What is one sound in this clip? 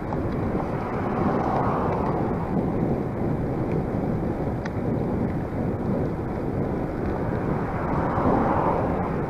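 Cars pass by on a nearby road.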